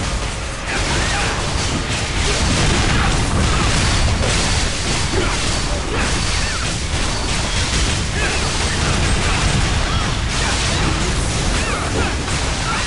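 Magic blasts and sword strikes clash in a game battle.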